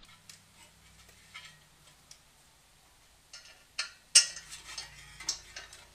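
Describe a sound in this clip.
Metal parts clink and rattle as hands work on an engine.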